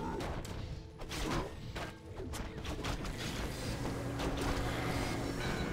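A magic spell bursts with a crackling whoosh.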